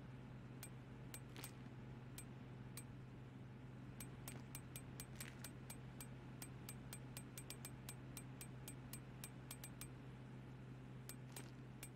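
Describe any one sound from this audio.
Short game menu clicks tick rapidly as items are scrolled through.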